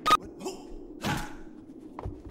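A sharp thud of a kick lands.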